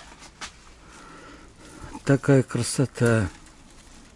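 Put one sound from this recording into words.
Leaves rustle as a hand brushes through a plant.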